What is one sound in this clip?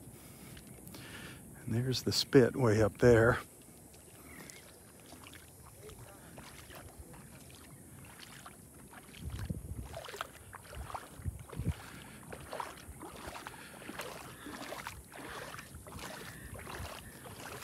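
Shallow water laps gently against the shore.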